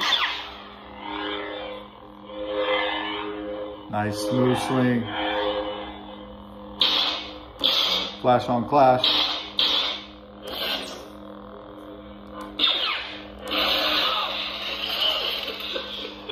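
A toy lightsaber swooshes as it swings.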